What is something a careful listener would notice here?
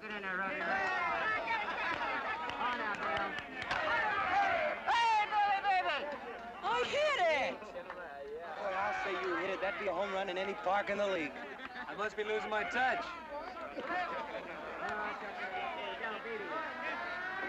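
A crowd of men cheers and shouts.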